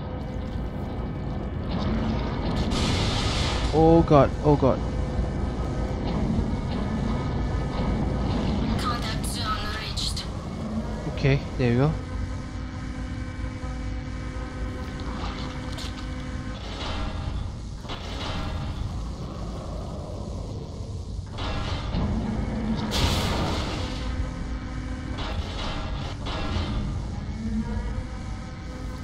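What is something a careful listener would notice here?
A machine rumbles steadily with a low drone.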